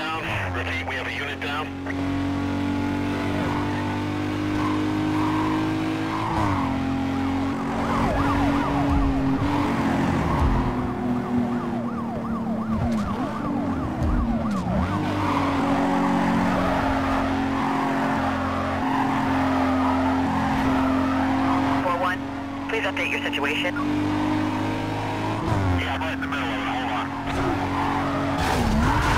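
A car engine roars at high revs, shifting gears as it speeds.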